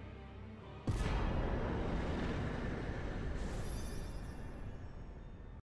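A soft magical whoosh rings out and slowly fades.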